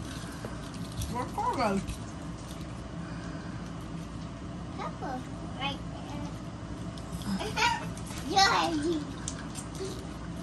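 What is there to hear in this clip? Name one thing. A boy talks close by.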